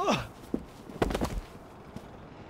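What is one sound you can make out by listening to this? A punch lands with a heavy thud.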